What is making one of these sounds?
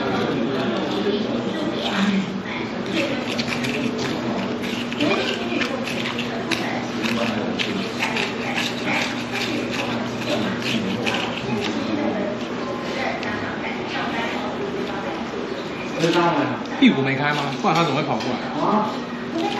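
A man slurps noodles close by.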